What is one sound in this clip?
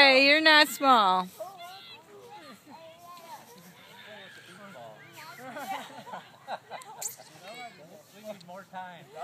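Young men and women call out and talk to each other outdoors.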